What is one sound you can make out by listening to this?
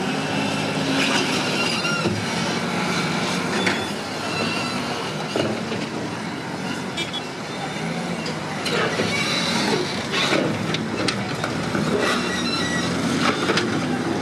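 Walls crash and crumble under a bulldozer.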